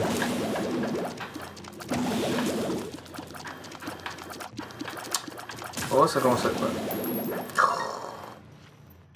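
Video game sound effects pop and zap rapidly.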